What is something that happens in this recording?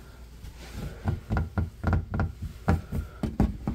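A light switch clicks on and off several times.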